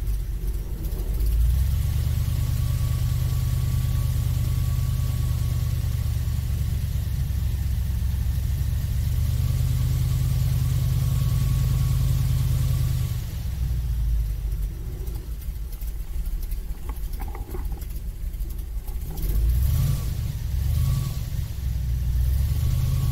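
An airboat's big fan engine roars loudly and steadily.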